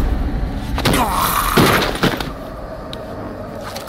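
A body thuds onto a hard floor.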